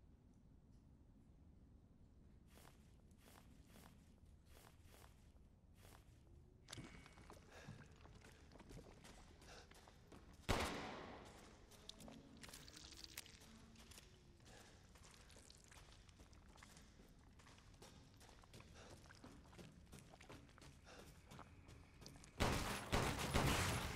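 A young woman talks casually into a close microphone.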